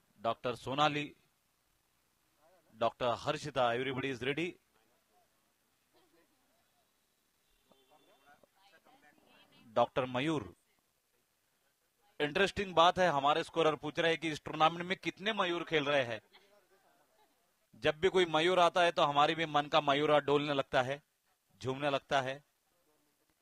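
A man talks into a microphone in short bursts.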